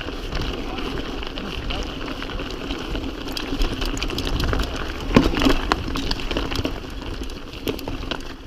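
A bicycle frame and chain clatter over bumps.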